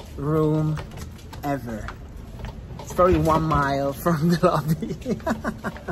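A young man laughs close up.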